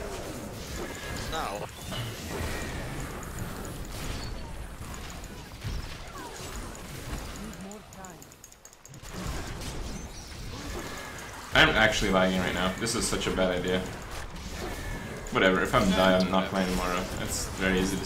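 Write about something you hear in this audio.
Magic blasts crackle and whoosh in a video game.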